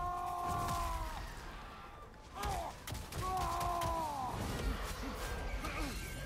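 Heavy blows strike and crash against stone.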